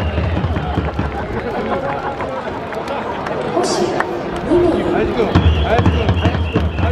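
A large stadium crowd cheers and chants all around.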